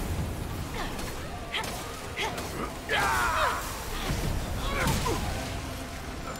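Monsters snarl and screech in a fight.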